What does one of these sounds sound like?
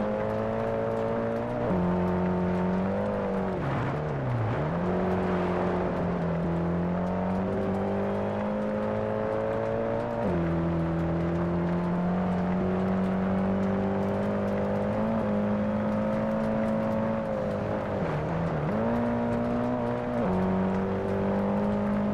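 Tyres crunch and hiss over gravel.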